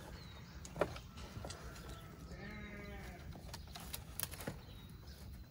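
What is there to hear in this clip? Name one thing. Dry twigs snap and crack close by.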